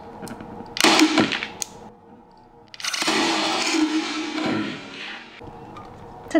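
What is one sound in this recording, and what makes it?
Scissors snip and crunch through a plastic bottle.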